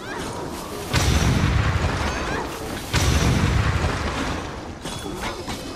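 A heavy blast booms and rumbles.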